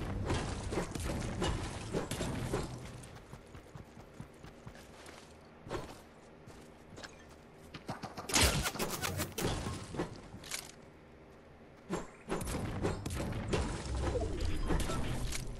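A pickaxe strikes a rock with sharp thuds.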